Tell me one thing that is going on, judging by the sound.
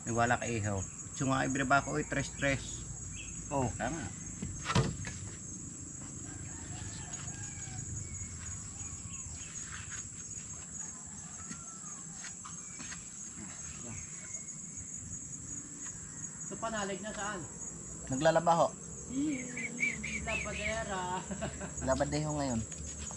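Men talk casually nearby outdoors.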